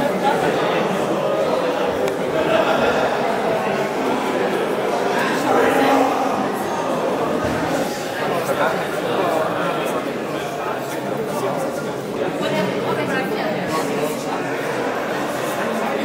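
A crowd chatters in a large echoing hall.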